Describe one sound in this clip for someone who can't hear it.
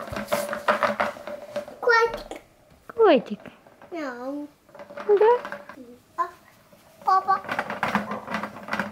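A toy's plastic wheels rattle and clatter across a hard floor.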